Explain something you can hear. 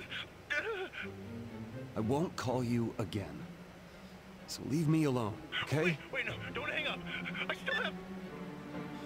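A young man talks on a phone, tense and hurried.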